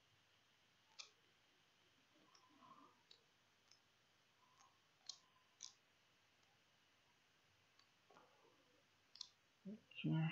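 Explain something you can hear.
A computer mouse clicks several times.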